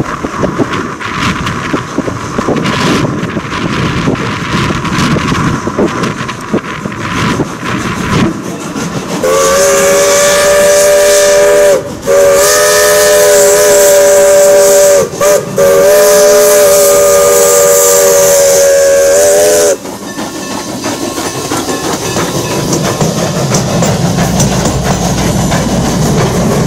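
A steam locomotive chugs heavily as it approaches and passes close by.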